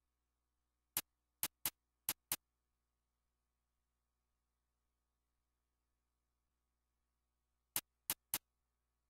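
Short sharp menu clicks sound in quick bursts.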